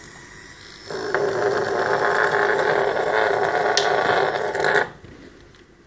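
A hot air tool blows with a steady rushing hiss.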